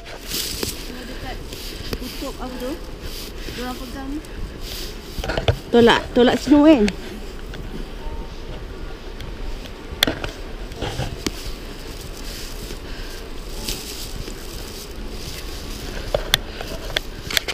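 Boots crunch on snow with each step.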